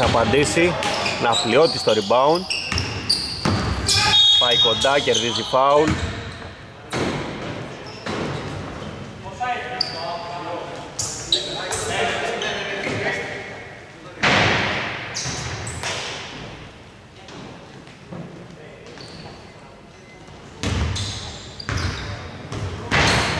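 Men call out to each other across an echoing hall.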